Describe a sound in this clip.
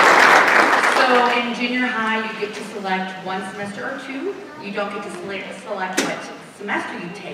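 A woman speaks warmly into a microphone over loudspeakers in a large hall.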